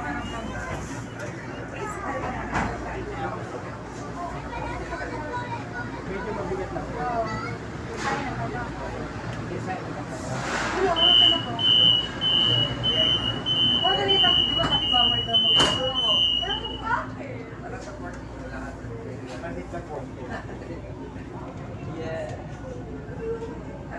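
A light rail train rumbles along its track.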